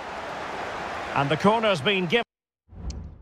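A stadium crowd roars loudly.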